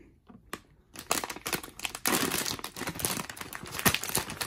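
A foil packet crinkles and tears as hands open it.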